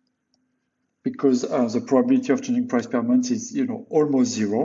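A man speaks calmly and steadily into a close microphone.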